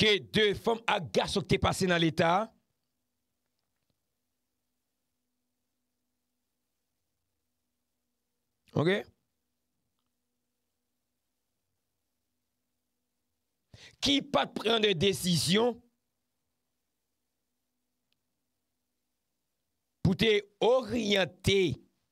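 A man speaks with animation into a close microphone, in short bursts with long silences between.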